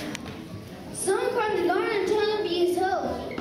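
A young boy speaks loudly into a microphone.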